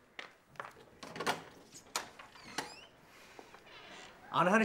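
A wooden window clatters as it is pushed open.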